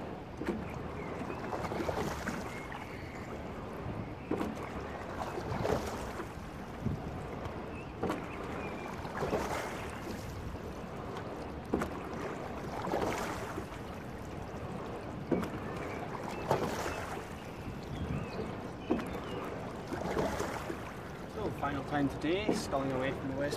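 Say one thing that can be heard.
Oarlocks clunk sharply with each stroke.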